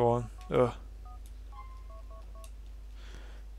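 A mobile phone beeps as its keys are pressed.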